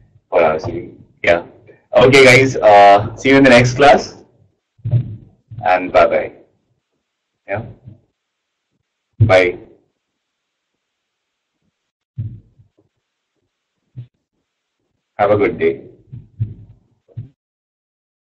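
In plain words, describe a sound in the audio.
A young man speaks through a microphone on an online call, explaining in short bursts.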